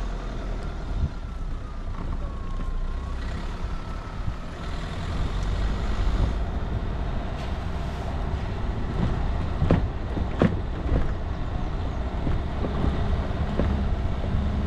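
Loose stones knock sharply against the underside of a vehicle now and then.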